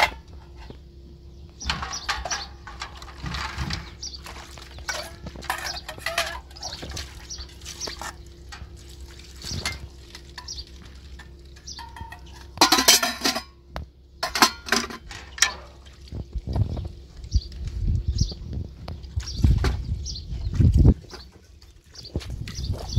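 Metal pots and plates clink and clatter.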